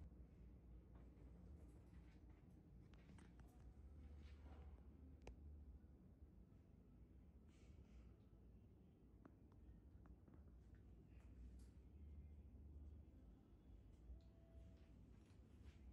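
Small instruments click now and then.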